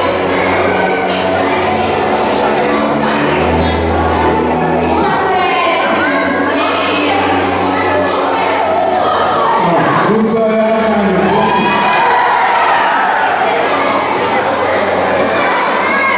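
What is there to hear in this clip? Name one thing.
A middle-aged man speaks through a microphone and loudspeaker in a large echoing hall.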